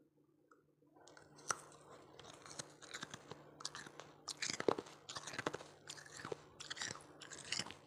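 Ice fizzes and crackles softly in liquid.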